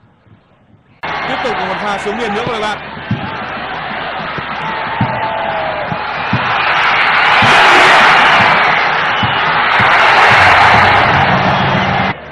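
A crowd in a stadium roars and cheers, swelling loudly.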